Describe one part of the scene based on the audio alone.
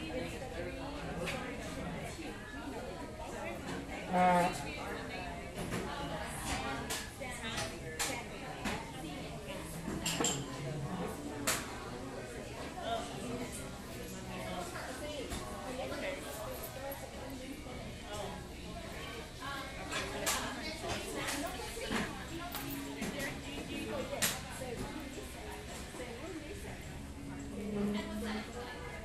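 Dishes and cutlery clink now and then.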